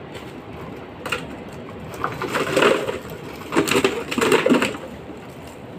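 Plastic bottles clatter and crackle as they are stuffed into a bag.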